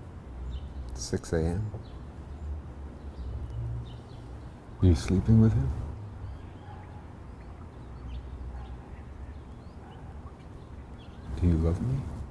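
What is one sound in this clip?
A middle-aged man speaks in a low, calm voice close by.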